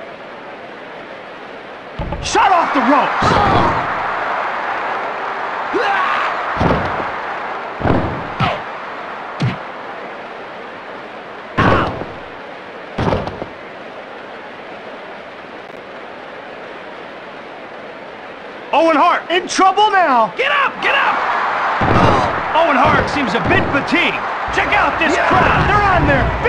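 A large crowd cheers and roars steadily in the background.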